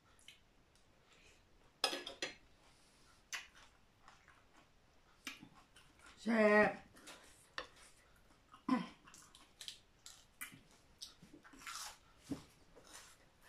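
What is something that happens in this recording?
Cutlery clinks and scrapes against a plate.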